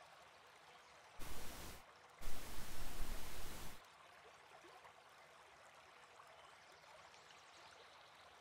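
A waterfall splashes steadily.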